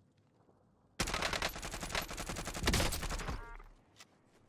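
Rapid gunfire bursts loudly at close range.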